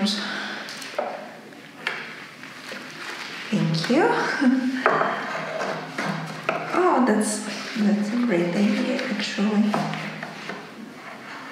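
Wood creaks and knocks as a chair is worked on.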